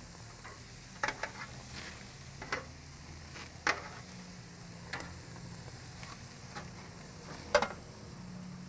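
Metal tongs clink against a grill and a metal pan.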